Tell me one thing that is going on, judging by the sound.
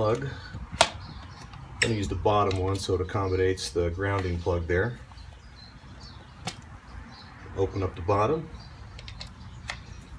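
A plastic plug clicks and rattles in a man's hands.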